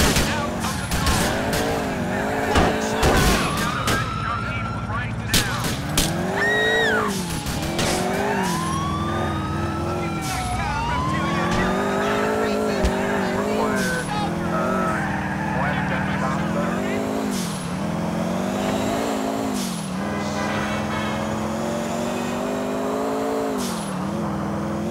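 A car engine revs up and down as it drives.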